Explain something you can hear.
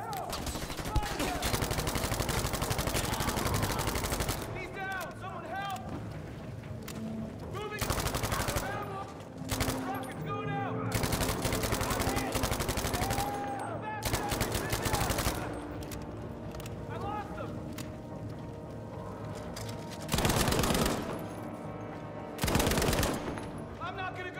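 A machine gun fires in rapid, loud bursts.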